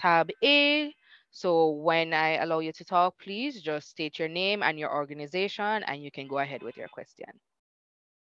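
A young woman speaks calmly through a headset microphone on an online call.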